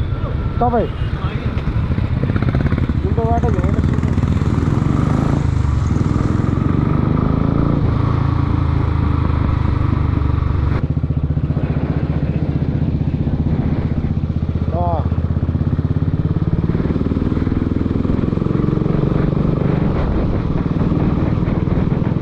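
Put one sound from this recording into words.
A motorcycle engine hums and revs steadily close by.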